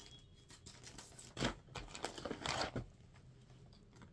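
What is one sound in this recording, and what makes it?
Cloth rustles as it is handled.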